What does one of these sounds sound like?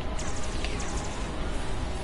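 An energy beam hums and crackles.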